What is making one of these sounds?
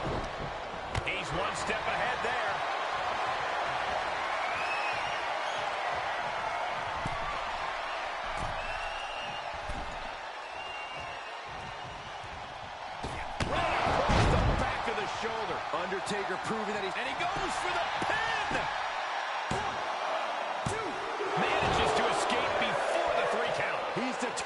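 A large crowd cheers and roars in a big arena, swelling loudly at times.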